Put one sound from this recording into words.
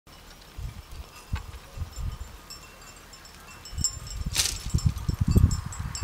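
Wind gusts across an open field.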